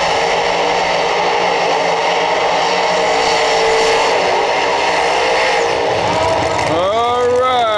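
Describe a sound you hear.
A race car engine roars loudly as its tyres spin and screech.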